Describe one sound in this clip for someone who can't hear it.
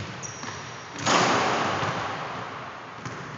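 A basketball hoop rattles loudly as a player dunks.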